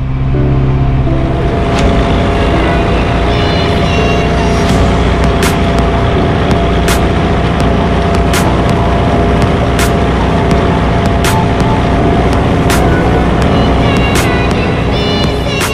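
A tractor engine rumbles nearby outdoors.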